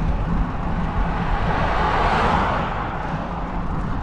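A car rushes past close by.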